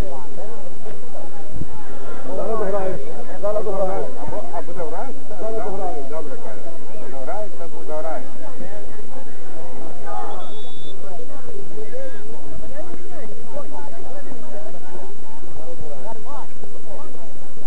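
Men talk casually close by, outdoors.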